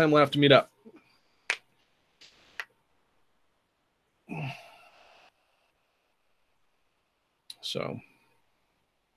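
A young man speaks calmly in short bursts over an online call.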